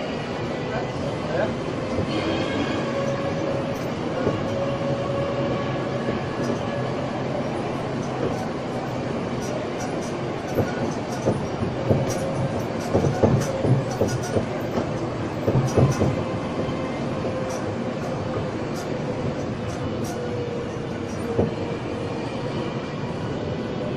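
A small tourist train's engine hums steadily as it rolls along a street.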